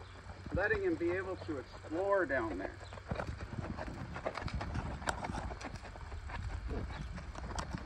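A horse walks with hooves thudding on sand.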